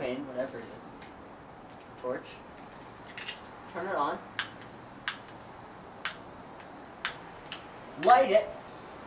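A torch lighter clicks several times.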